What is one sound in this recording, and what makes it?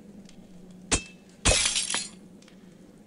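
Blades clash in a brief fight.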